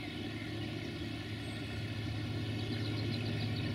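A train rumbles by in the distance.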